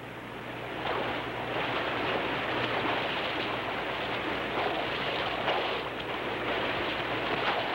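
Horses splash through shallow water.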